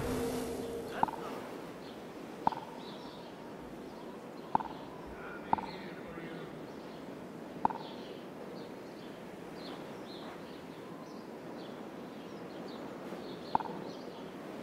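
Short soft interface clicks sound now and then.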